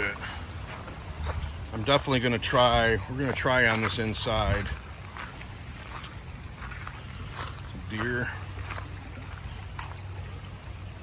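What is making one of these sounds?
Footsteps crunch on a dirt path with dry twigs.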